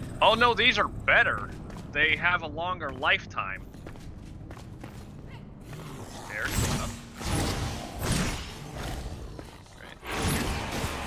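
Footsteps run over a hard floor.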